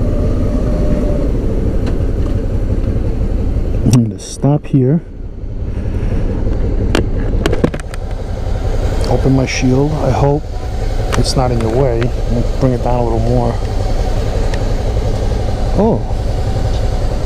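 Wind buffets the rider outdoors.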